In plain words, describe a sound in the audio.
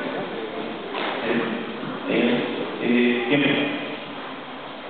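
A man shouts short commands in a large echoing hall.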